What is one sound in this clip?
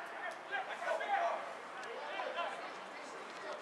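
Football players shout to each other far off across an open field.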